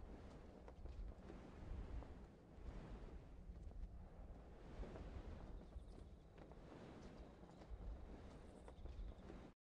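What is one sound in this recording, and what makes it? Wind rushes steadily past during a parachute descent.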